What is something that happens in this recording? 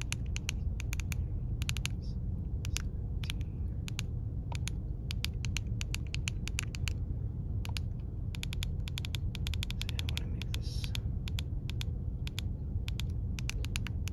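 A handheld radio beeps quickly as its buttons are pressed.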